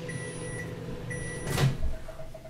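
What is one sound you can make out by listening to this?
A microwave beeps.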